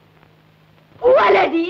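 A woman cries out loudly nearby.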